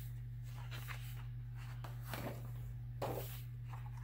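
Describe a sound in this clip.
Paper rustles as a sketchbook page is turned.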